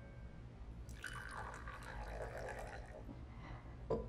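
Tea pours from a teapot into a cup.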